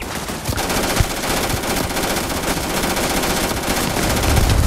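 A grenade launcher fires with a heavy thump.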